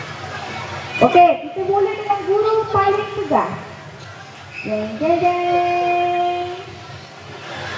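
A woman sings through a loudspeaker in long, held notes.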